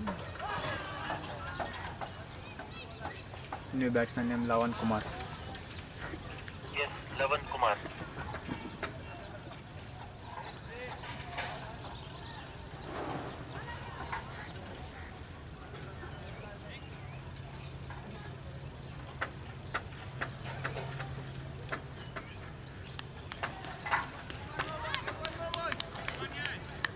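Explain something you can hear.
Men call out to each other across an open field.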